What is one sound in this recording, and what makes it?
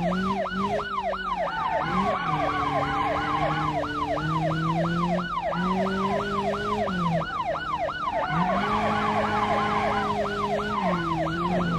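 A police siren wails in a fast, repeating rise and fall.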